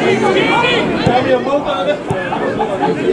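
A football is kicked with a dull thud.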